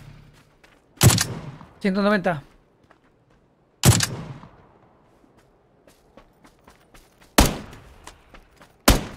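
Rifle shots crack sharply, a few seconds apart.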